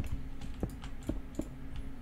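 A block cracks and breaks apart.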